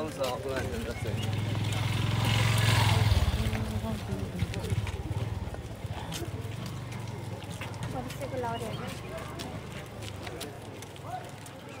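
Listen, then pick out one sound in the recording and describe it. Footsteps patter on a paved path.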